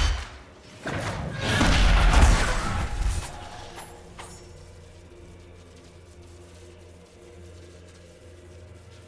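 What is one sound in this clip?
Flames roar up in a fiery burst.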